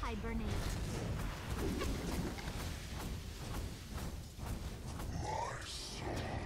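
Game spell effects crackle and zap in quick bursts.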